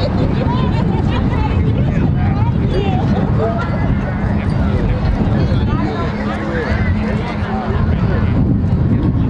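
A crowd of young people chatter outdoors.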